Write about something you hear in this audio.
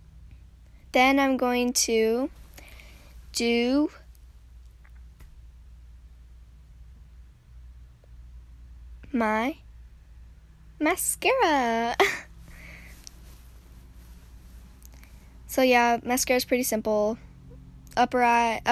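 A girl talks close to a microphone, in short bursts.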